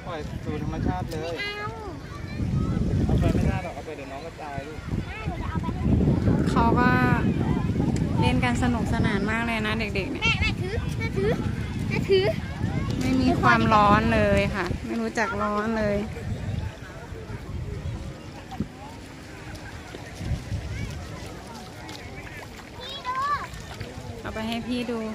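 Young girls talk and call out excitedly close by.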